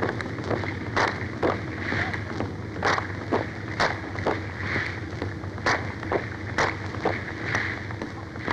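Hands clap sharply in a rhythm.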